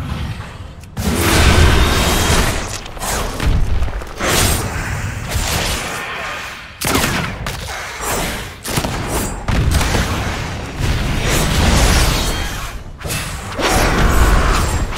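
Blows and spell effects crash in a fight with a large winged beast.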